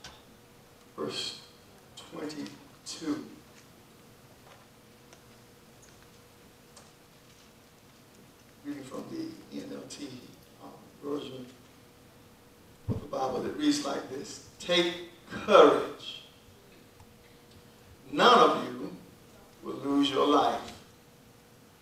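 A man preaches into a microphone in an echoing hall, speaking in bursts with pauses.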